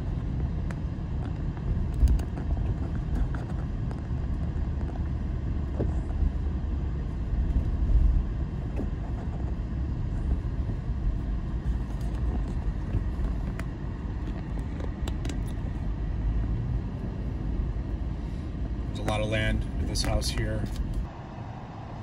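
A car drives along a road with a steady low rumble.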